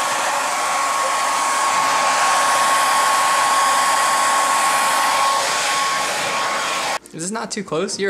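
A hair dryer blows with a loud steady whoosh.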